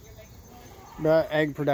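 A hen gives a few loud, drawn-out squawks.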